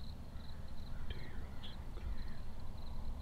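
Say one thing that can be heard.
Wild turkeys call out in the distance.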